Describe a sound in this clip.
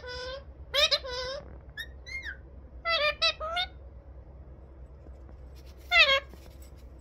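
A parrot squawks and chatters in short, shrill, pitched calls close by.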